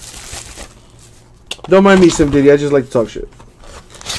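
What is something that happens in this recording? A cardboard box is opened with soft scraping.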